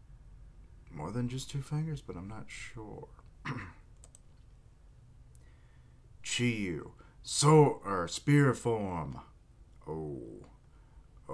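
A young man talks calmly and close to a microphone, in short bursts with pauses.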